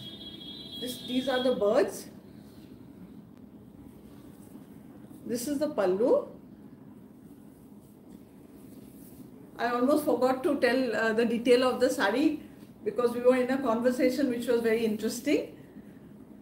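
A woman speaks close by, calmly and with animation.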